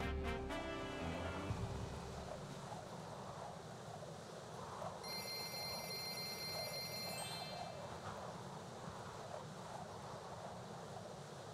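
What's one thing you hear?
A man talks casually into a nearby microphone.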